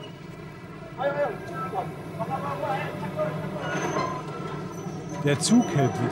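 Men's voices call out nearby.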